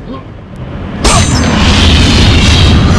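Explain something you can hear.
A loud rushing burst starts suddenly and carries on.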